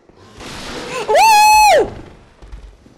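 A young woman screams loudly into a microphone.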